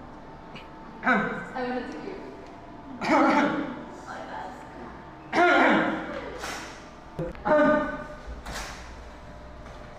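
A young man speaks loudly with animation.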